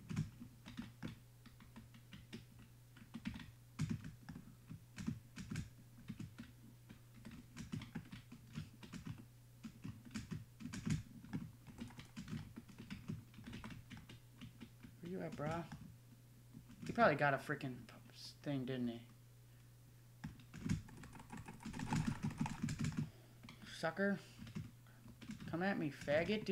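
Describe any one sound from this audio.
Footsteps thud quickly on wooden blocks.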